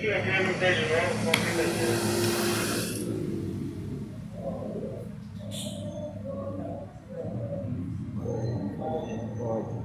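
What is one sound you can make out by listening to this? An elderly man talks nearby.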